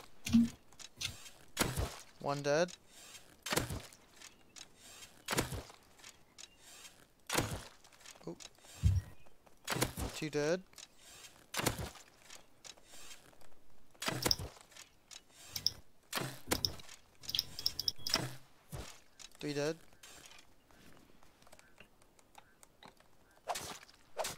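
A bowstring snaps as arrows are loosed, again and again.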